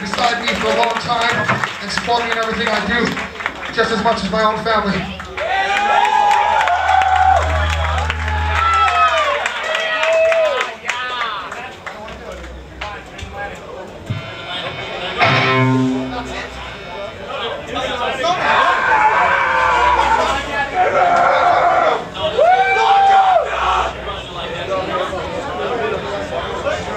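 Electric guitars play distorted chords.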